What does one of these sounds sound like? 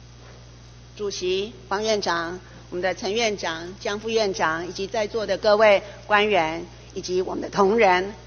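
A middle-aged woman speaks with animation through a microphone in a large hall.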